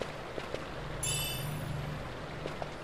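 A bright, rising chime rings out.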